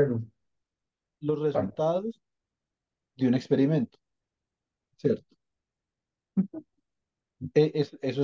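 A man speaks calmly in short phrases through an online call.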